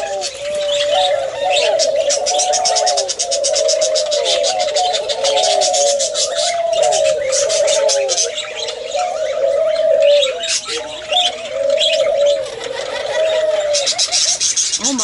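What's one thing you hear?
Doves coo over and over, close by.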